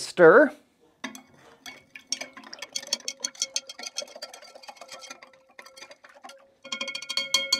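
A metal spoon stirs and clinks against a glass beaker.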